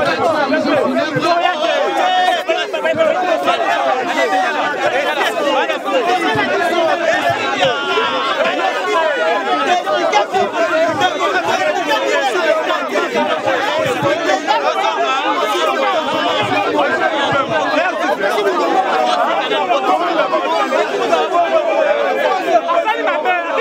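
A dense crowd of men and women talks and shouts all around, close by.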